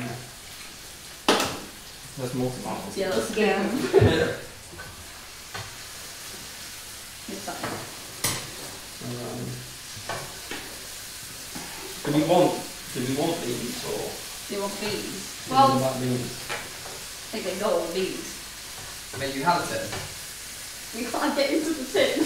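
Several young adults talk casually nearby, with pauses between remarks.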